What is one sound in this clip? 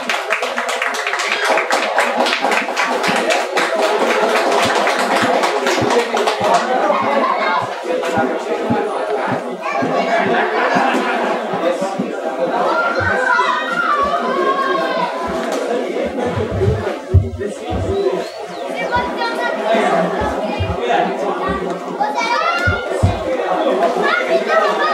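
A drum beats a steady rhythm.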